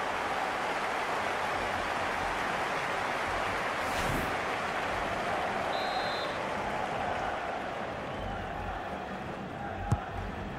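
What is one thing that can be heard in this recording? A large crowd roars steadily in a stadium, then slowly quiets.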